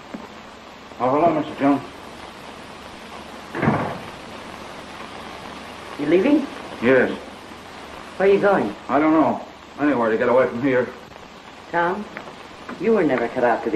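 A woman speaks, heard through an old, hissy film soundtrack.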